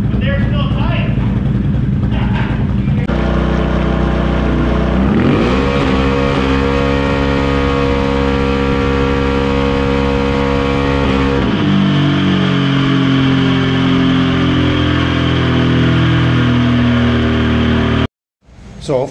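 A quad bike engine roars loudly, revving up high, holding, then dropping back.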